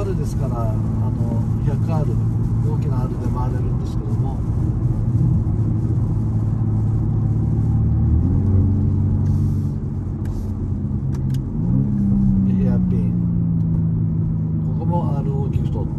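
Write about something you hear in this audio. A car engine hums steadily and rises in pitch as the car shifts gears.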